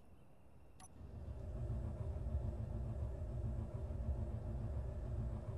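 A vehicle's engine starts up and hums steadily.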